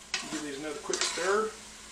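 A spoon stirs and scrapes inside a metal pot.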